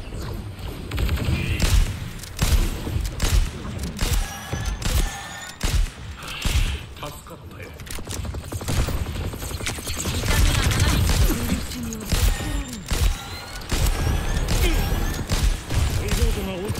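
Game explosions and energy blasts boom heavily.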